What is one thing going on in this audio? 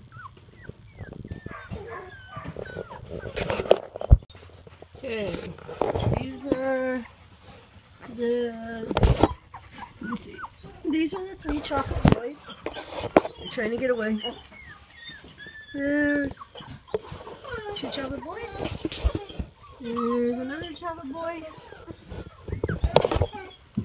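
Young puppies whimper and squeal close by.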